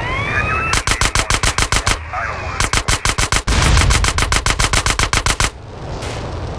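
A machine pistol fires in rapid bursts.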